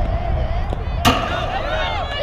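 A softball bat cracks against a ball.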